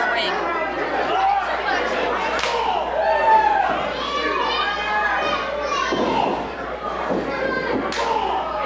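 A crowd of men and women shouts and cheers in an echoing hall.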